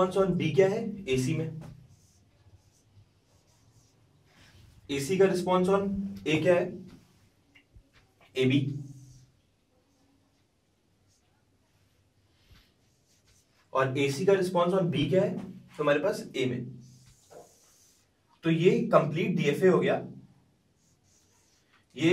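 A young man explains calmly, close by, in bursts with pauses.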